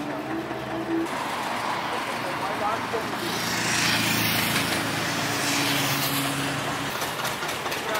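A tractor engine putters past nearby.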